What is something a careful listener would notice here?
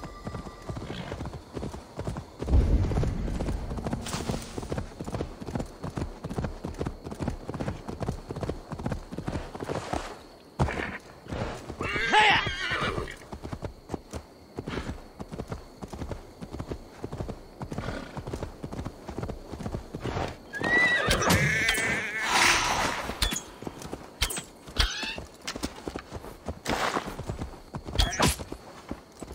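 A horse gallops with rapid hoofbeats on grass.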